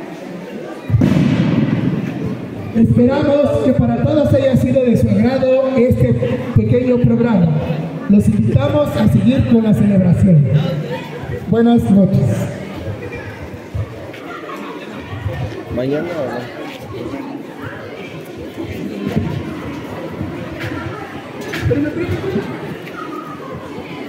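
A crowd of people murmurs in the background.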